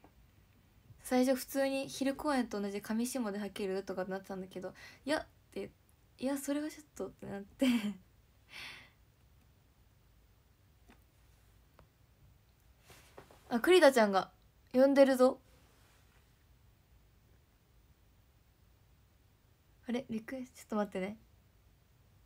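A young woman talks cheerfully and close up.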